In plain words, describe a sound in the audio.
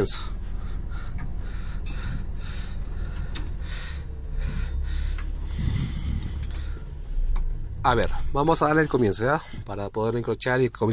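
A truck's diesel engine idles with a steady low rumble, heard from inside the cab.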